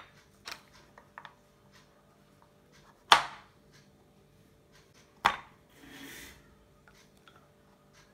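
A knife chops nuts on a cutting board.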